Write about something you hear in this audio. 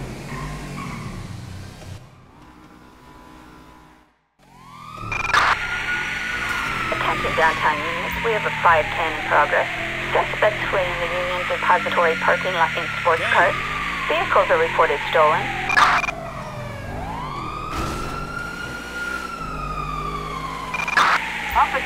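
A sports car engine roars.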